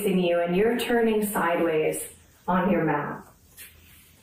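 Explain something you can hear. A young woman speaks calmly and clearly nearby.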